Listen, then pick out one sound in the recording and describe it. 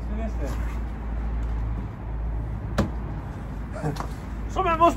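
A wooden fence panel thuds as it is set down.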